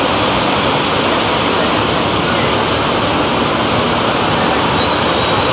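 Water rushes and churns loudly in a steady roar.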